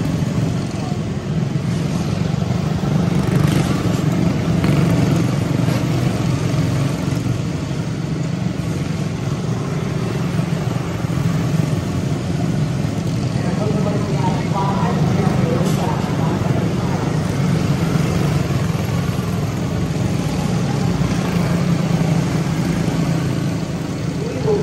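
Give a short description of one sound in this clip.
Small racing kart engines buzz and whine loudly as they pass close by, outdoors.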